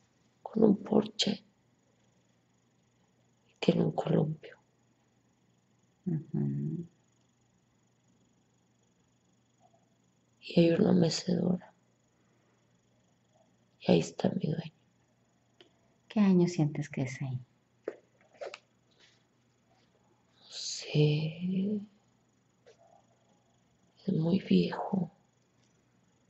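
A young woman speaks softly in short bursts, close by.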